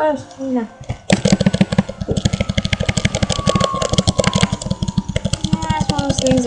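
Chiptune game music plays with a fast, pulsing beat and a slowly falling tone.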